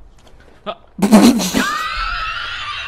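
A young man laughs loudly close to a microphone.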